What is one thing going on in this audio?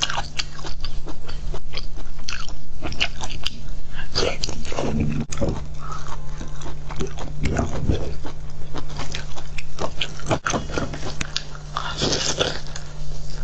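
A young woman chews and crunches raw shellfish close to a microphone.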